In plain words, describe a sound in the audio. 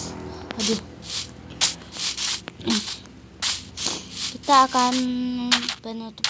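Footsteps crunch on sand and grass.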